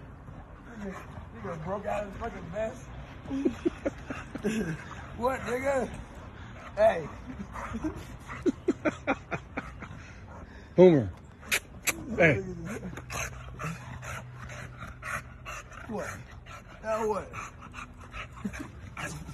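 A man laughs and talks playfully close by.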